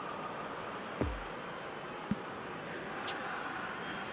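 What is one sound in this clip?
Short menu clicks sound a few times.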